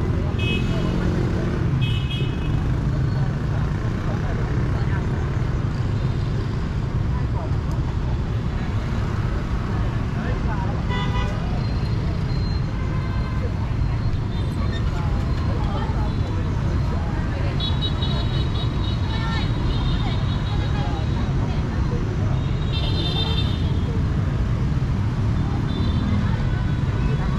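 Motorbike horns beep now and then.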